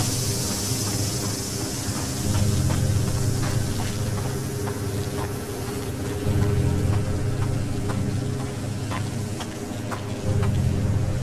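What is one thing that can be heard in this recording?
Footsteps crunch over a gritty, debris-strewn floor.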